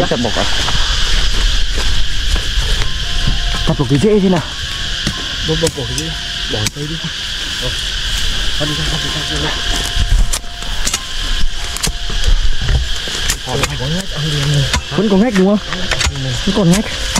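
A hoe chops into soil.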